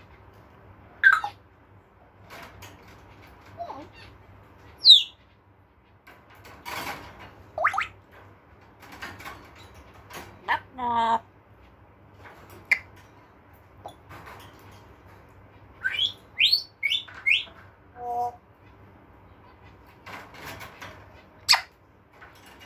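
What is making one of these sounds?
A parrot whistles and squawks close by.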